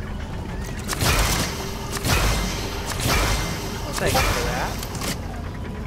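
A burst of crackling energy blasts out in a game.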